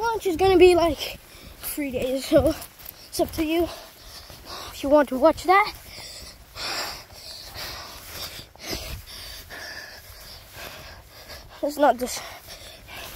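A young child squeals and shrieks excitedly close by.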